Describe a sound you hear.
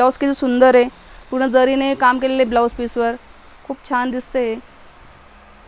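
A woman speaks clearly and with animation close by.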